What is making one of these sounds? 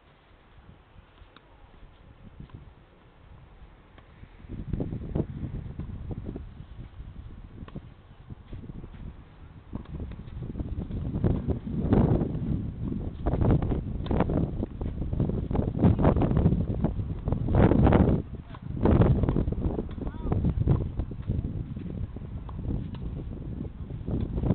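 A tennis racket strikes a ball again and again.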